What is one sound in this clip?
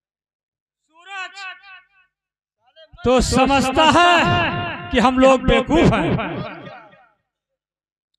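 A man speaks loudly and theatrically through a microphone.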